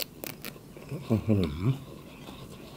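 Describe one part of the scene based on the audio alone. A young man hums briefly with his mouth closed.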